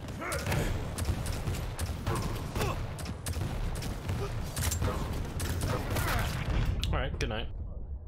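Gunfire and explosions blast in quick bursts.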